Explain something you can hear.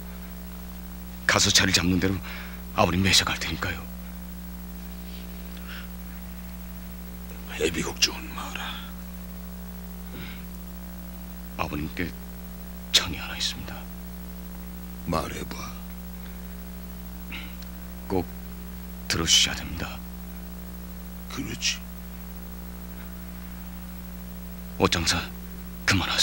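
An older man speaks in a low voice.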